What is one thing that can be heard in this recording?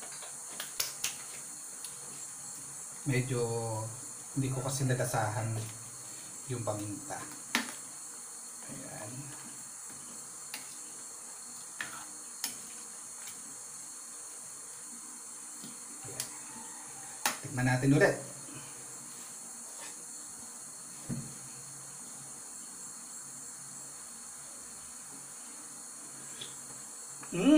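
A metal ladle clinks against a pan.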